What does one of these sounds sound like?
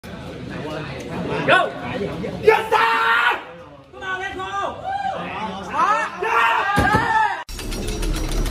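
A young man calls out commands with animation, close by.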